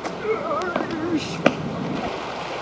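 A skateboard lands hard on pavement with a clack.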